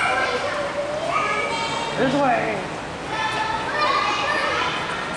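A young girl talks and squeals excitedly nearby, with a slight echo.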